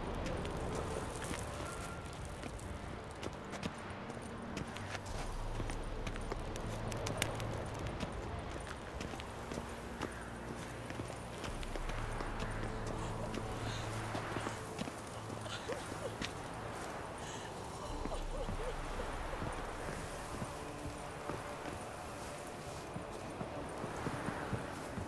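Footsteps crunch steadily on gravel and stone.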